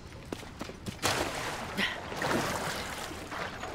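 Water sloshes and rushes around a swimmer.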